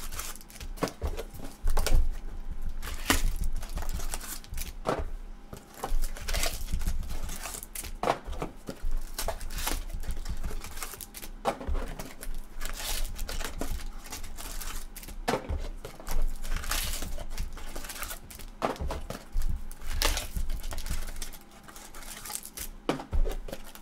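Stiff plastic card cases click and clatter as they are stacked on a table.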